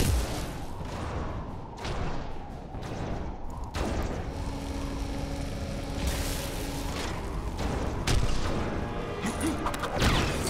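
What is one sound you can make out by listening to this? Fiery explosions boom and roar.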